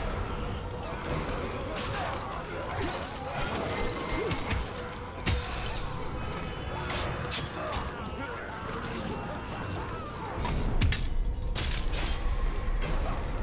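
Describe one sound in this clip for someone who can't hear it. Fire crackles and roars.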